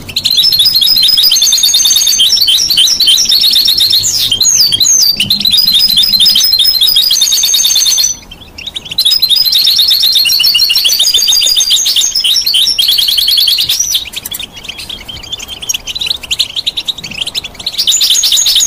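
A canary sings loud, rapid trills and warbles close by.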